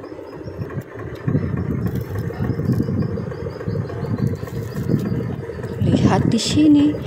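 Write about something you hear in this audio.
Plastic toy truck wheels roll and rattle over stone paving.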